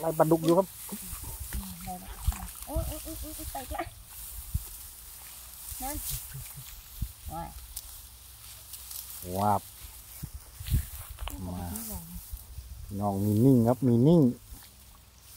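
A woman talks casually nearby.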